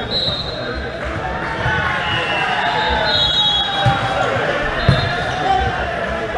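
Young men shout and call out to each other on the court.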